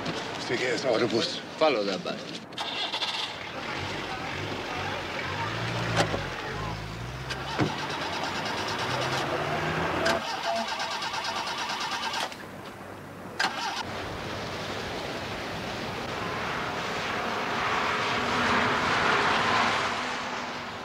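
A car engine hums as a car drives slowly.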